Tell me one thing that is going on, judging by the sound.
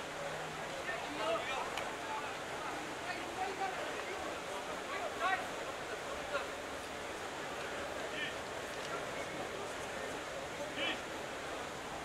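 Players shout to each other across an open field in the distance.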